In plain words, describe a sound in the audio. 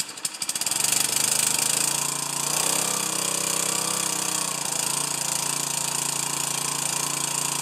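A small petrol engine starts up and runs with a steady roar close by.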